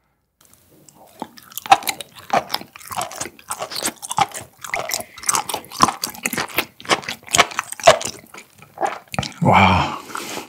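A young man chews and smacks his lips close to a microphone.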